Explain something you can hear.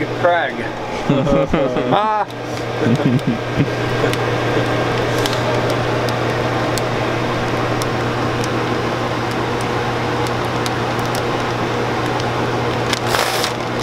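A machine hums steadily with a low drone.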